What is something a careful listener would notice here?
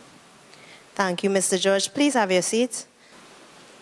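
A young woman speaks through a microphone.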